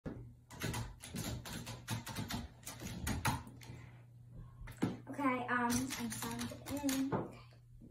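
Computer keys click quickly.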